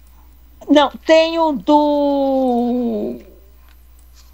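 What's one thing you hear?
An elderly woman speaks loudly in long, drawn-out words over an online call.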